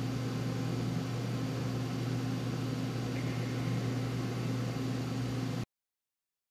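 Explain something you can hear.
A machine hums steadily and loudly.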